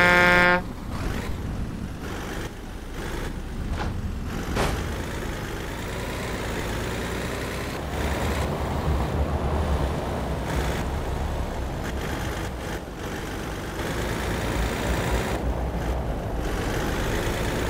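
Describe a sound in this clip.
A diesel heavy truck engine rumbles as the truck drives along a road.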